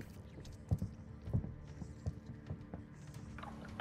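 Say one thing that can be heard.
Footsteps thud softly on a hard floor.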